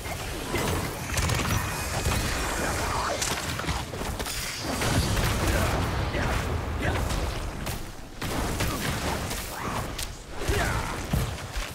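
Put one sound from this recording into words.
Loud fighting sounds with heavy blasts and impacts roar throughout.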